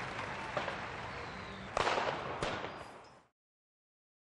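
Fireworks bang and crackle.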